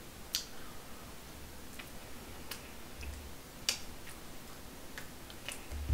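A young man chews food with wet smacking sounds.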